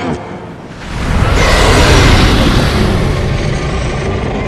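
A huge wall of water roars and rushes.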